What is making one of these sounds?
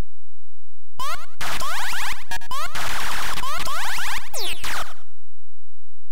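Retro game sound effects buzz and warble.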